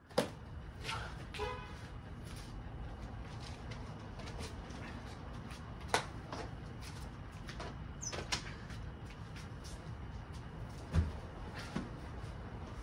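Bags thump and rustle as they are loaded into a car boot.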